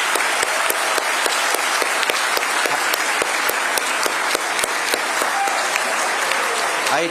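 A crowd claps steadily, with many hands applauding together.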